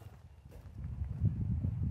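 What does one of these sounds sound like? Footsteps crunch on wood chips.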